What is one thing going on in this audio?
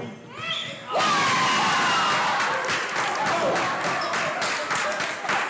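A crowd cheers loudly after the point.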